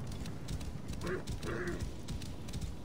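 A horse snorts and whinnies briefly.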